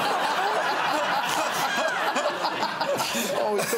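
A man chuckles.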